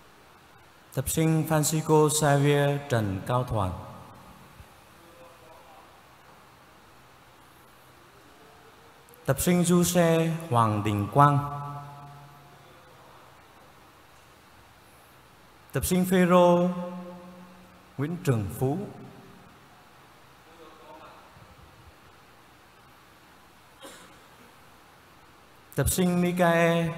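A man chants in short sung phrases through a microphone, echoing in a large hall.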